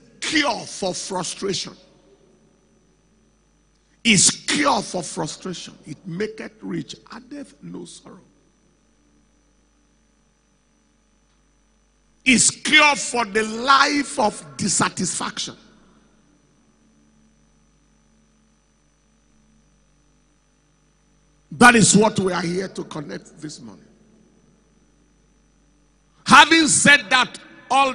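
A man preaches with passion into a microphone, in bursts with long pauses, heard through loudspeakers in a large hall.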